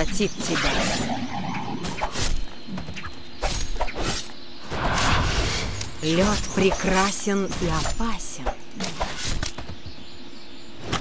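Magic spells crackle and whoosh in quick bursts.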